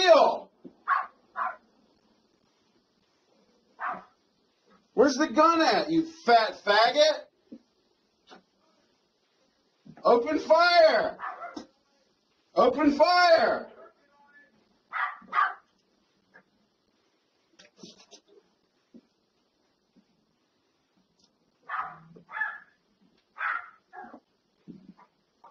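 A man speaks close by in short, loud, animated bursts.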